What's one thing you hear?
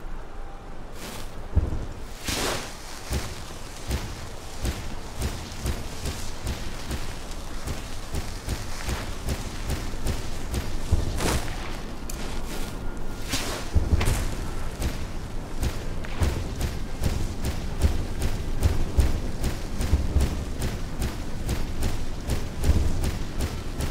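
Footsteps fall steadily on stone.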